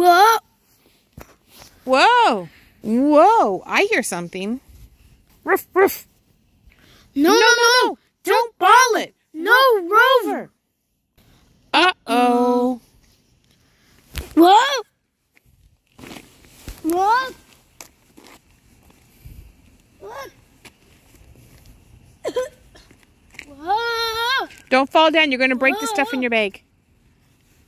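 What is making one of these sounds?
A young boy talks with animation close to the microphone.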